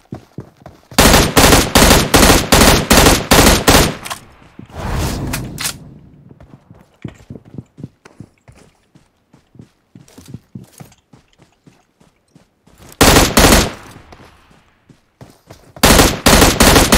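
Rapid bursts of gunfire crack loudly.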